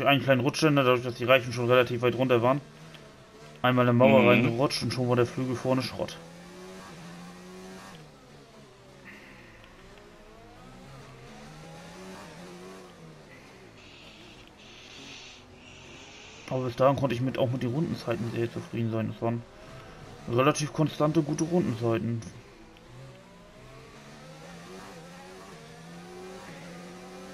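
A racing car engine screams and whines, its pitch rising and falling with each gear change.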